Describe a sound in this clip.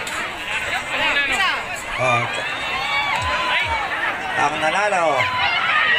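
A large crowd of men and women talks and shouts loudly outdoors.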